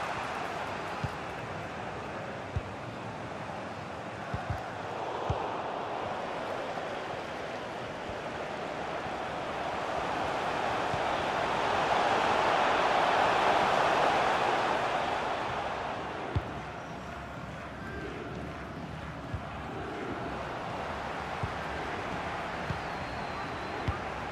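A football is kicked with dull thumps now and then.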